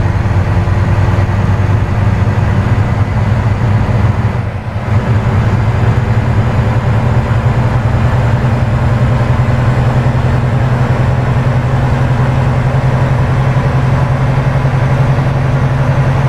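A truck engine rumbles steadily from inside the cab.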